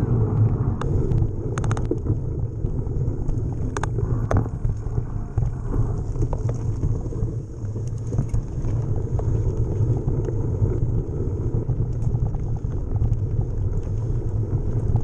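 Wind rumbles loudly across a close microphone.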